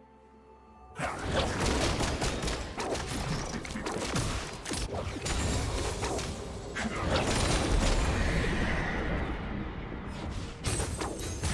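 Spell blasts and weapon hits clash and crackle in a busy fight.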